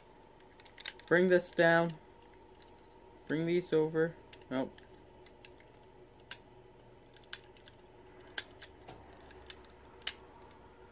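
Plastic toy parts click as they are handled.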